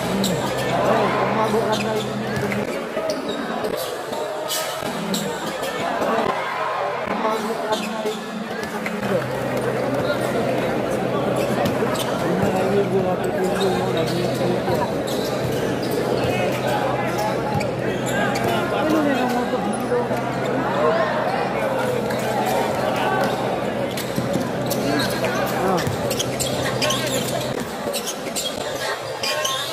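A large crowd cheers and shouts in an echoing indoor arena.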